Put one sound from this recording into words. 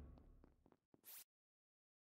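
A short electronic whoosh sounds.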